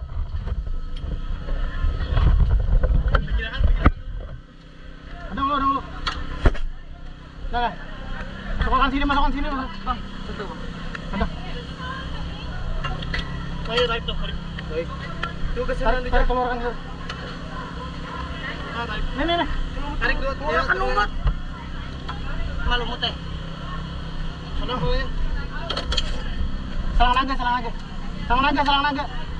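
Metal parts clank and knock as a small engine is handled.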